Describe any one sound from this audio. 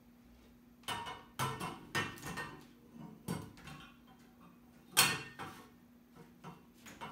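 Metal chair legs clank and knock together as they are fitted.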